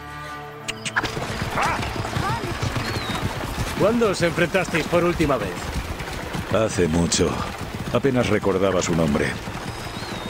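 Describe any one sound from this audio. A horse-drawn chariot rolls along a dirt track.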